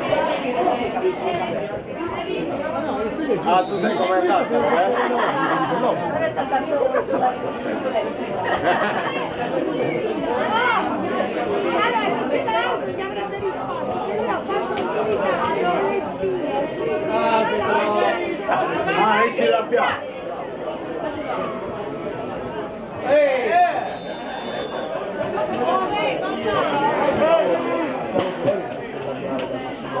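Young players shout to each other across an outdoor football pitch.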